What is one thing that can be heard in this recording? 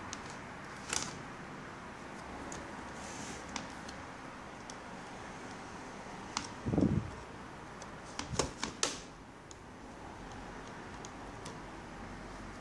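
A plastic tool clicks and scrapes against a laptop casing.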